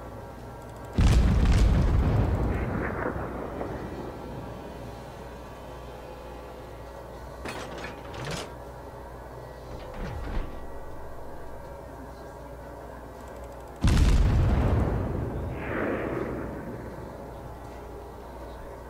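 Heavy naval guns fire a loud booming salvo that rumbles and fades.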